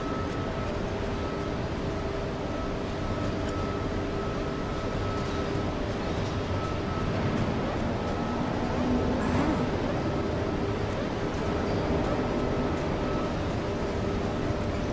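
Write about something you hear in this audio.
Quick footsteps slap on a hard metal floor.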